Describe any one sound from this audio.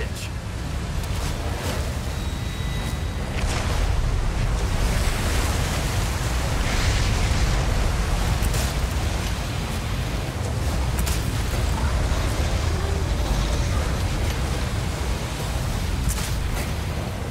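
Water churns and splashes loudly around a boat.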